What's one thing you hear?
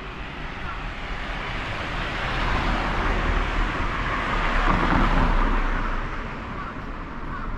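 A small car drives past on the street, growing louder and then fading.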